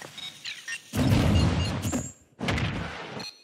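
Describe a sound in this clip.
A bomb explodes with a loud boom.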